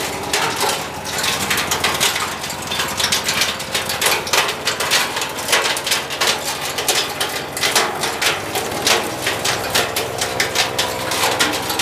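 A wood chipper grinds and cracks branches.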